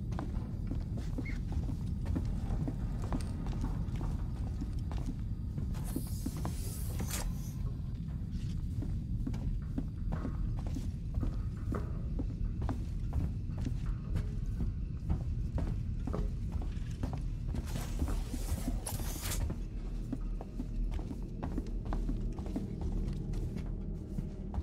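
Footsteps thud on a metal floor at a steady walking pace.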